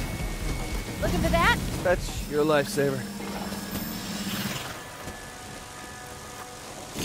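Energy blasts whoosh and crackle.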